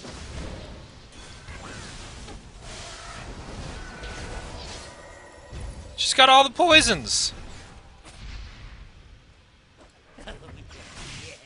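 Magical blasts zap and crackle in a video game battle.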